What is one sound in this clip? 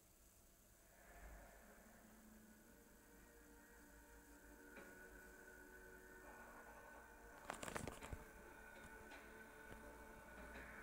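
Eerie music plays through a television's speakers.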